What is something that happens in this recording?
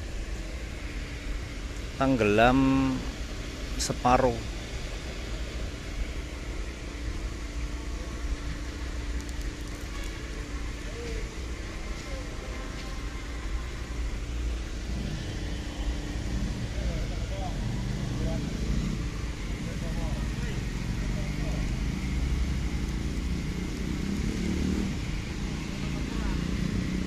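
A large truck engine idles with a steady low rumble.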